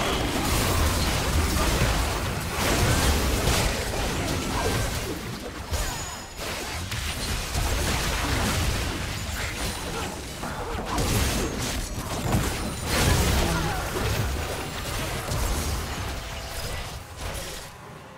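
Spell blasts, hits and explosions from a fantasy battle game crackle and boom in quick succession.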